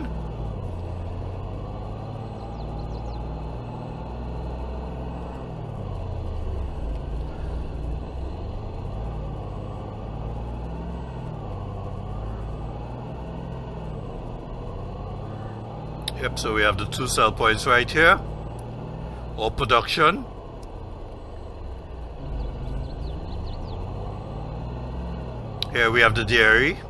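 A pickup truck's engine hums steadily as it drives along a road, rising and falling in pitch with its speed.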